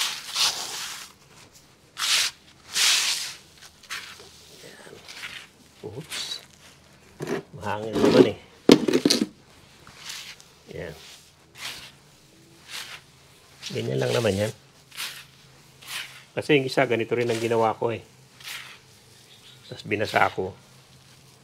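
Gloved hands scrape and rustle through loose soil close by.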